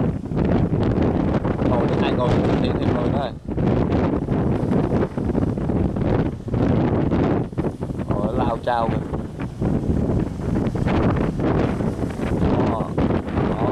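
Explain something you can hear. Rough waves crash and splash.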